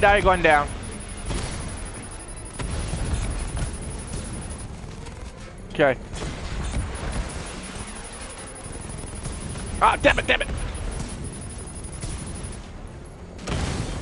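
A rapid-fire gun rattles in bursts.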